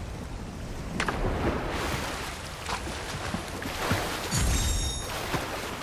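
Water splashes as a figure plunges in and swims.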